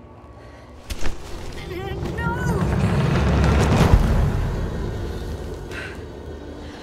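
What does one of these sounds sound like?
Rocks crash down with a deep, heavy rumble that swells and then slowly fades.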